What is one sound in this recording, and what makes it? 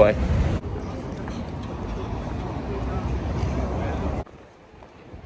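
Traffic hums along a city street.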